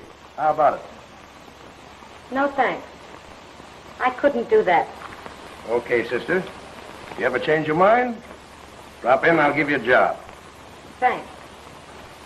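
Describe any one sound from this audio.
A man speaks loudly and with animation, close by.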